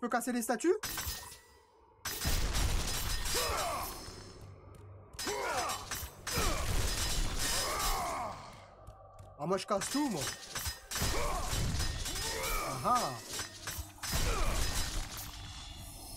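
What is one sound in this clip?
Fire bursts with a roar.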